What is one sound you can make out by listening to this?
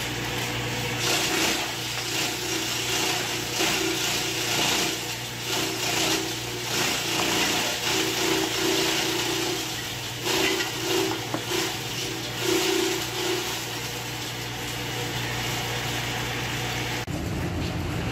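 A shredding machine motor hums and whirs steadily.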